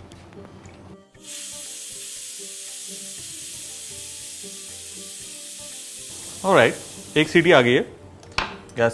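A pressure cooker hisses loudly as steam escapes.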